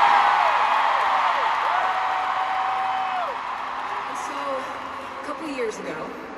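A woman sings a long held note through loud speakers in a large echoing arena.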